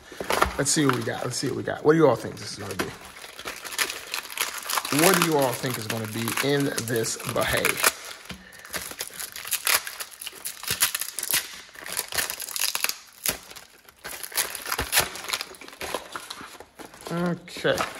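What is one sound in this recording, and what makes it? Cardboard and paper rustle and crinkle as a package is opened.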